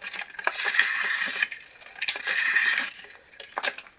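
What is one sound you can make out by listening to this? A thin line rasps as it is pulled through plastic.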